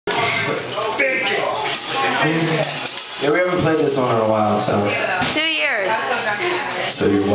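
A drum kit is played with cymbal crashes.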